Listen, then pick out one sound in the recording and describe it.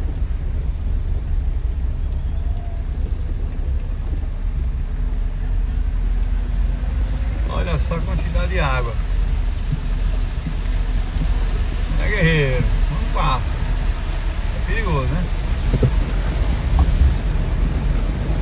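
Rain patters steadily on a car windshield.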